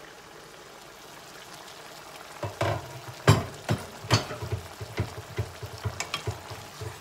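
Food sizzles and simmers in a pan.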